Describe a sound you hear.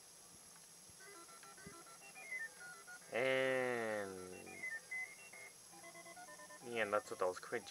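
An arcade game plays short electronic bleeps in a little tune.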